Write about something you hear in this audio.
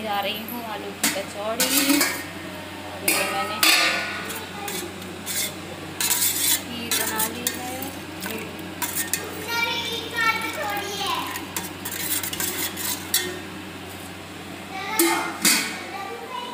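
A metal ladle scrapes and clinks against a steel pot.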